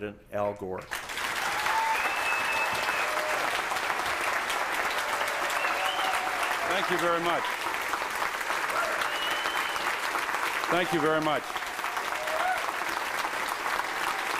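A large crowd claps loudly in a big room.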